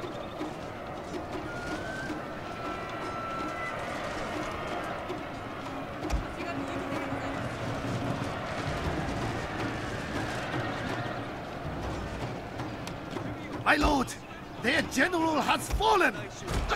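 A great mass of soldiers clamours and roars in the distance.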